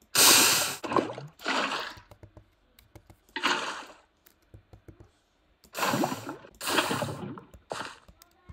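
Water splashes as it pours out of a bucket.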